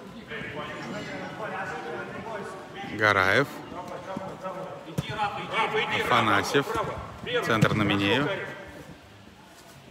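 Spectators shout loudly to young players in an echoing indoor hall.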